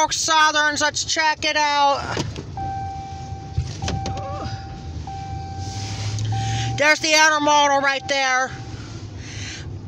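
A car engine hums and tyres roll on the road, heard from inside the car.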